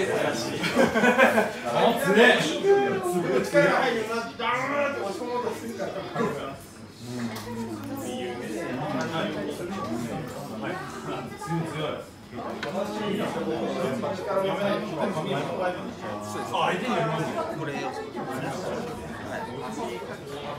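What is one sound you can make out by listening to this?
Several men talk and call out loudly nearby.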